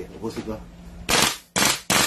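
An airsoft rifle fires with sharp cracks.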